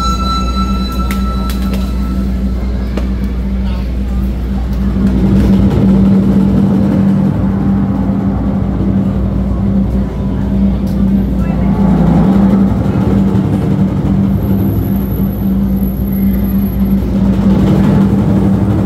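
Several large drums pound loudly together in a driving rhythm.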